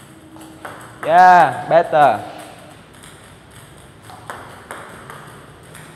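A ping-pong ball clicks on a table and paddle.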